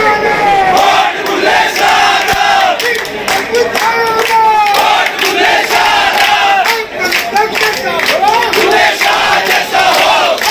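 Men clap their hands.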